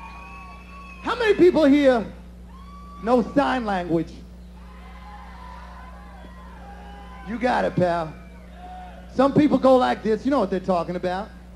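A man speaks loudly into a microphone in short bursts, heard through loudspeakers.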